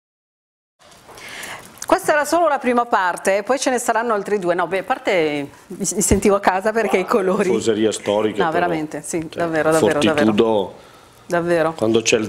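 A woman talks with animation into a microphone.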